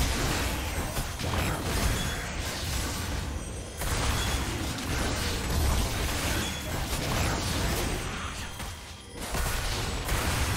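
Spell effects whoosh and crackle during a fight in a game.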